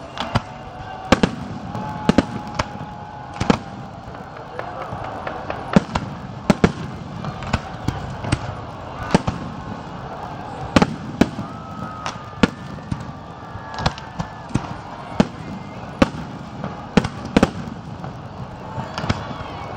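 Fireworks whistle as they rise.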